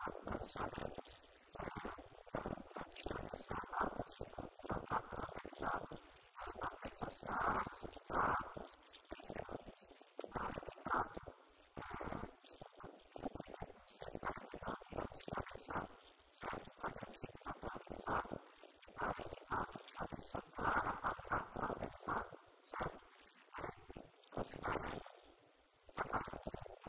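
A man speaks steadily into a microphone, heard through a loudspeaker in an echoing room.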